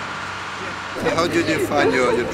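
Men and women talk and laugh in a close crowd.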